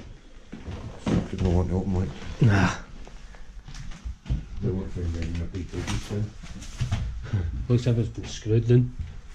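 A man speaks nearby in a low voice.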